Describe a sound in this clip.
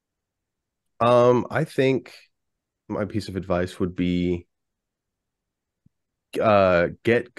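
A man speaks with animation, heard through an online call.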